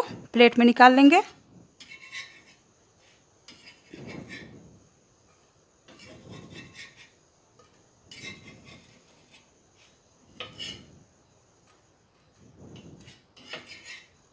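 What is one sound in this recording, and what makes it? A metal spatula scrapes against a pan in short bursts.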